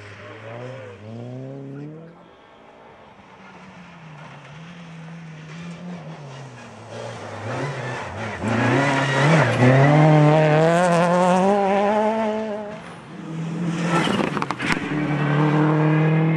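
A rally car engine roars and revs hard as it speeds past.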